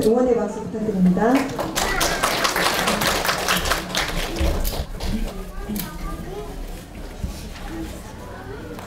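A woman speaks through a loudspeaker in a large echoing hall.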